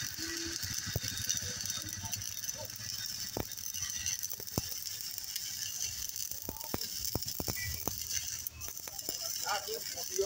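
Sparks spatter and pop from a weld.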